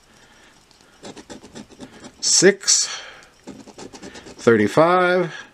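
A coin scratches across a paper card in quick, rough strokes.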